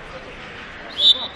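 A referee blows a short, sharp whistle.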